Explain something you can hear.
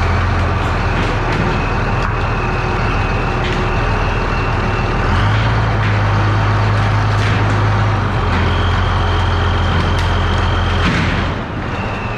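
A hydraulic loader whines as it lifts.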